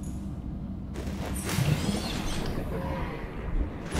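Water splashes as someone plunges in.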